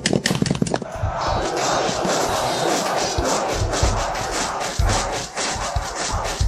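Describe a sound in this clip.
A fire crackles and roars.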